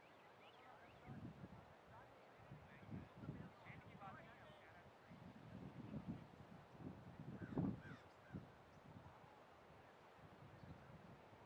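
Wind gusts across an open field outdoors.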